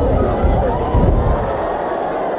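A body thuds heavily onto a padded mat.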